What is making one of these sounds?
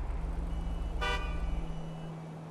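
A car horn honks briefly.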